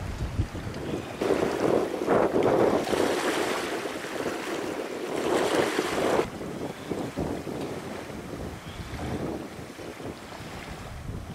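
Water laps gently against a flooded shore.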